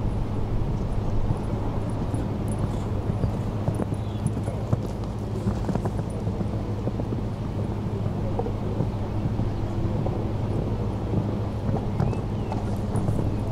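Horse hooves thud on soft sand at a canter.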